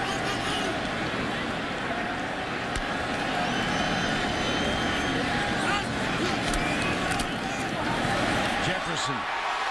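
A large stadium crowd roars loudly, then the roar drops away.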